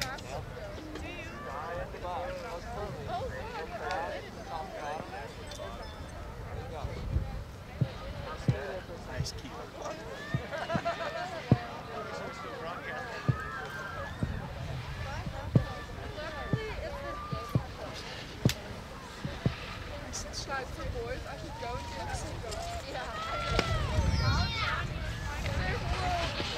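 Skis scrape and thud over packed, icy moguls.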